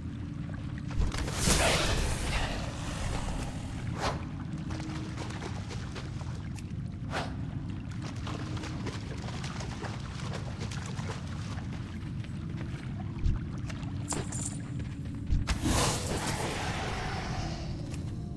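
Magic spells burst with loud whooshing swells.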